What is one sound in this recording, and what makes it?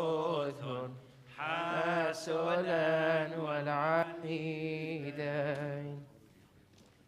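A man sings a slow, wavering chant through a loudspeaker in a large echoing hall.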